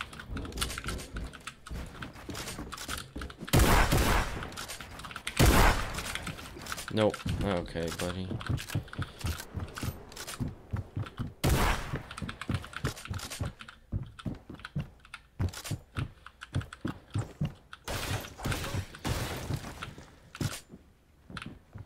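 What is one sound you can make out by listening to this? Video game building pieces clack into place in quick succession.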